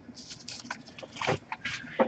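Card packs rustle and click as hands handle them.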